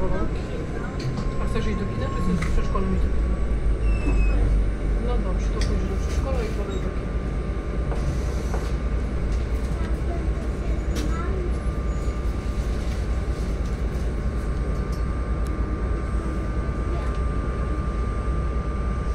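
A hybrid city bus idles at a stop, heard from inside.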